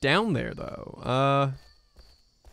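A man speaks animatedly into a close microphone.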